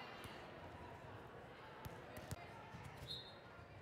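A volleyball is served with a sharp smack.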